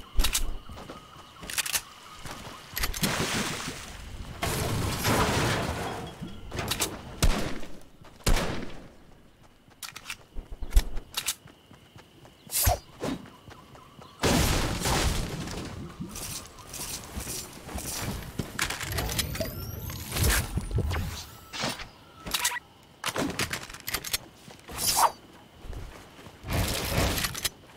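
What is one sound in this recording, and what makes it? Footsteps run over grass and hard floors.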